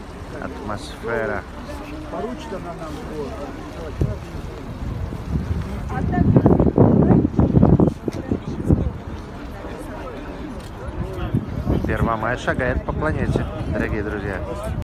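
A crowd of men and women talks outdoors.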